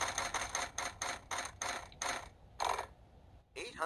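A spinning prize wheel ticks rapidly and slows down through a small game speaker.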